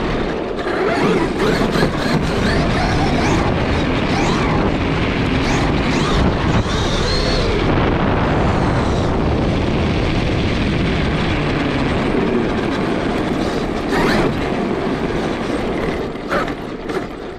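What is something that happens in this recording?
An electric motor whines, rising and falling in pitch as a small car speeds up and slows down.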